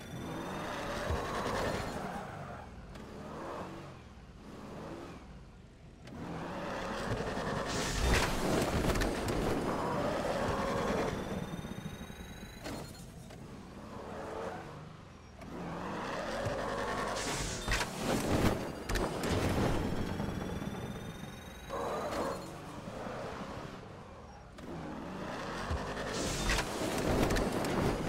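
A car engine revs and roars as it speeds up.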